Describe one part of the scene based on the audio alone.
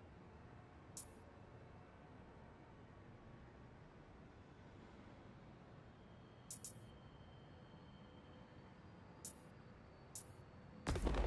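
Soft menu clicks sound as selections change.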